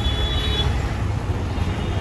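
A motorcycle engine passes by.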